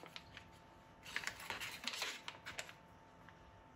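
Foil wrapper crinkles.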